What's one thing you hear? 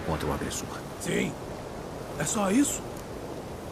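An elderly man asks a short question in a deep voice.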